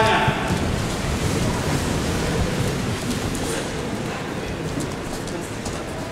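Many people shuffle and thump on padded mats.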